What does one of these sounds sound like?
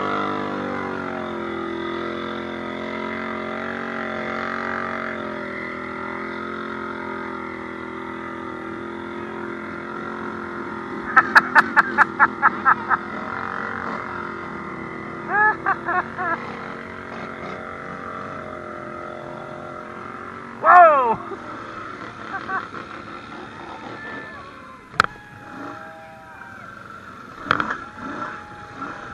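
Off-road quad bike engines drone and rev nearby, outdoors.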